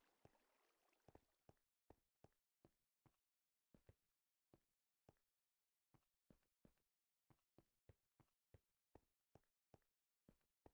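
Footsteps tread on stone at a steady walking pace.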